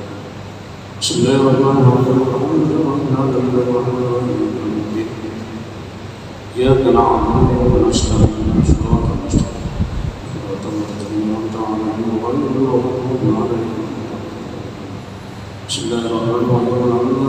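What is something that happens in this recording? A man chants in long melodic phrases through a loudspeaker in a large echoing hall.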